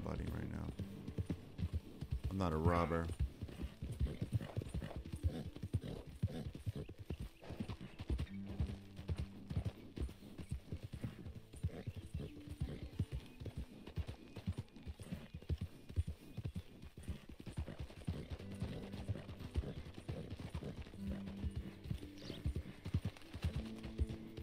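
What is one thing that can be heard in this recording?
Horse hooves clop steadily on a dirt trail.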